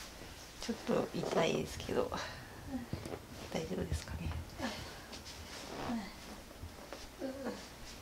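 A young woman speaks softly and gently up close.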